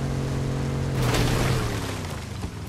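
A car crashes into a tree with a loud crunch.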